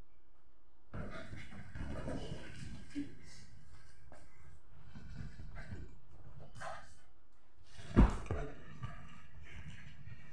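A dog's paws thump and scramble on a sofa.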